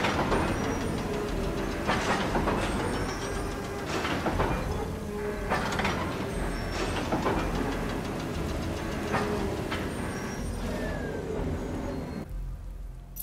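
A crane's motor hums and rattles as it moves a load.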